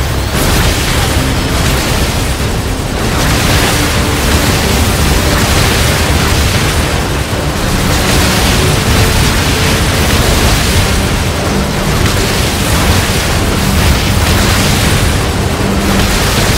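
Rapid gunfire and laser shots ring out continuously.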